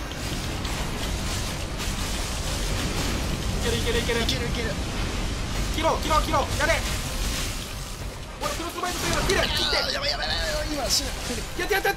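A huge beast roars and crashes about in a fight.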